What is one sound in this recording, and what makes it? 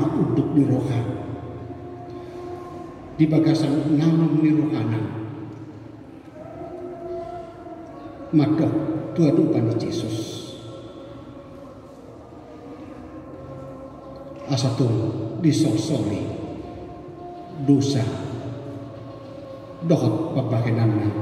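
A middle-aged man speaks calmly into a microphone in an echoing hall, with pauses between phrases.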